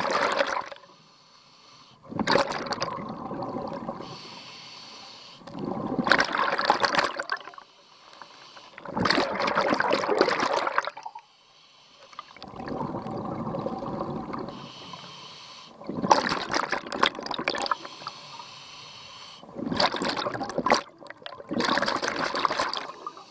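A diver breathes through a regulator underwater in loud, regular bursts.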